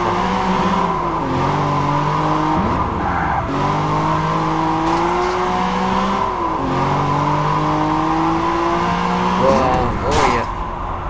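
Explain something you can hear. A sports car engine roars, rising and dropping in pitch as it shifts gears.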